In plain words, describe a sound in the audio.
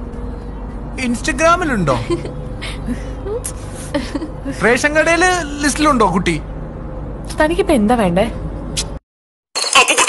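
A young woman speaks with emotion close to a microphone.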